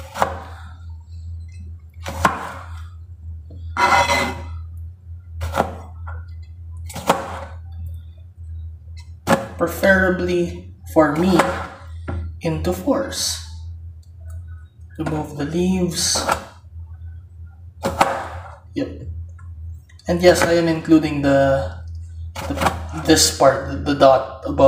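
A knife chops through tomatoes onto a cutting board with sharp knocks.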